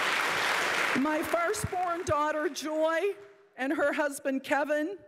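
An older woman speaks calmly into a microphone.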